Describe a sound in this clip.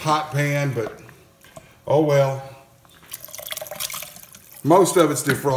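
A spoon stirs thick, bubbling stew in a pot.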